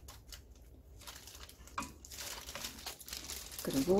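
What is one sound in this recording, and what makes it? A plastic spatula stirs food in a nonstick wok.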